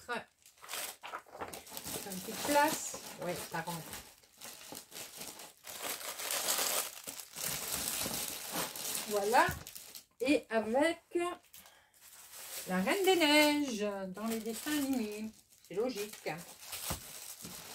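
Papers rustle and shuffle as they are sorted by hand.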